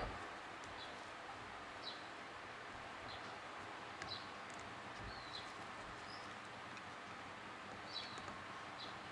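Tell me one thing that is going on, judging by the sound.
Small metal parts click together.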